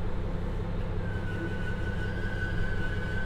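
Train brakes squeal with a thin high whine as the train comes to a stop.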